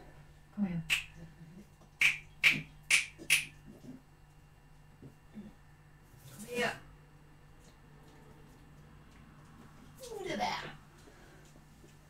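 A woman talks to a dog in a high, coaxing voice close by.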